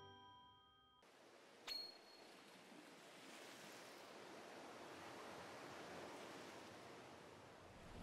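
Calm sea water laps softly.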